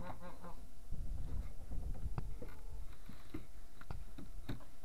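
A pig snuffles and roots in the dirt.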